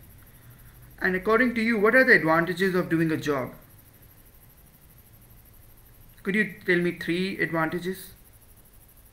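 A man speaks calmly and close to the microphone, in short bursts.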